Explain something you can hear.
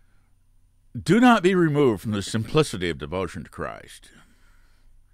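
An elderly man speaks calmly and closely into a microphone.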